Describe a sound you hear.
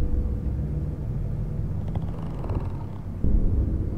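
Footsteps tap slowly on a hard tiled floor.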